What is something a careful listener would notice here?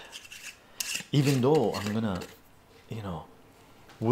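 A glass jar's lid clinks and scrapes as it is opened.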